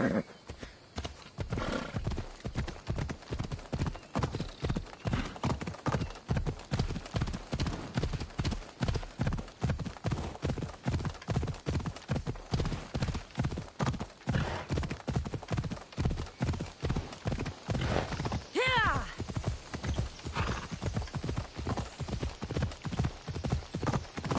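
Horse hooves thud rhythmically at a steady gallop.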